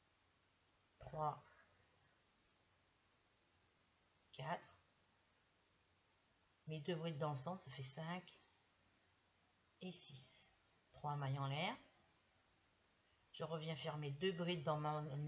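An older woman speaks calmly and close by, in short phrases with pauses.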